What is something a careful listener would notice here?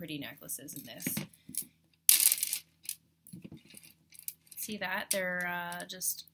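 Glass beads clink softly against a tray.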